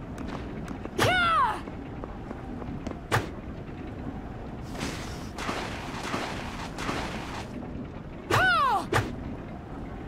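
A video game weapon swings with a sharp ringing swoosh.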